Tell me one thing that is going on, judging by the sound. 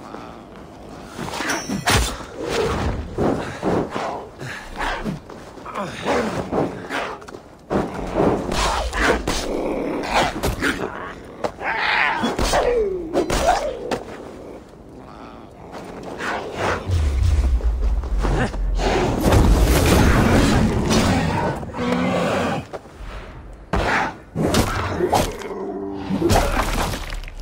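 A wolf snarls and growls.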